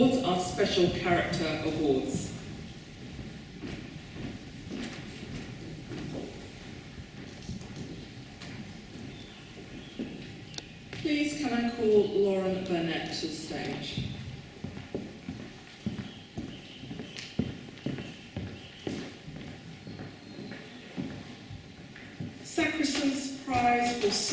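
A middle-aged woman speaks calmly through a microphone and loudspeakers in a large echoing hall.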